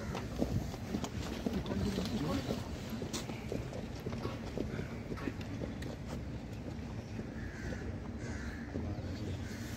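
Boots stamp on pavement as cadets march outdoors.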